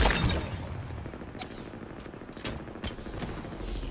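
A heavy punch lands with a thud.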